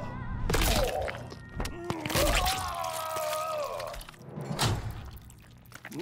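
A body is ripped apart with wet, crunching impacts.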